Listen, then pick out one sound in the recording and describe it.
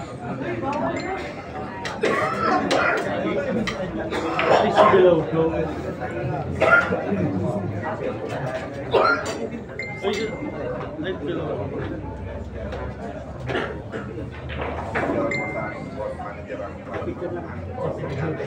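A crowd of men chatters and calls out nearby.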